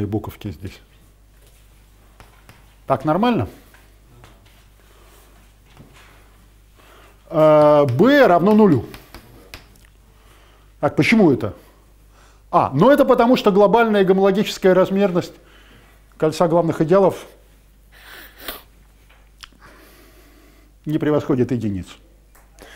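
An elderly man lectures in short, halting phrases with long pauses, in a room with a slight echo.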